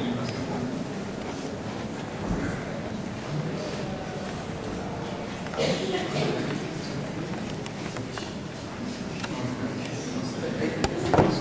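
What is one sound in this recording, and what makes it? A man speaks calmly through a loudspeaker in a large echoing hall.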